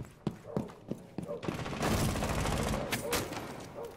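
A wooden barricade splinters and breaks apart.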